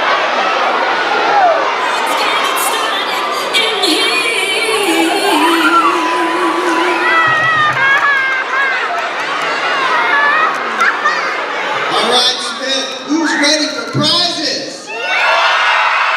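Children chatter and call out in an echoing hall.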